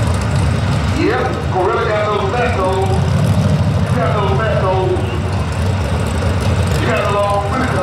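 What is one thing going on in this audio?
A car engine revs up sharply several times.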